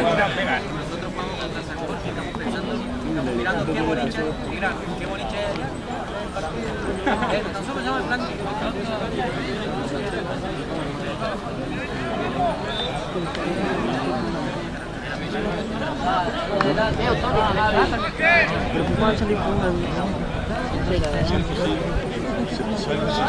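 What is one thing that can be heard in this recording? Young men shout and call to each other across an open playing field.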